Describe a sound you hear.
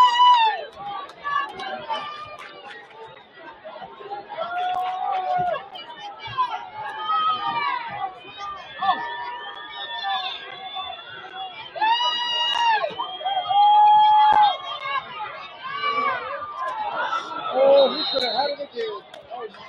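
Young men shout from the sideline.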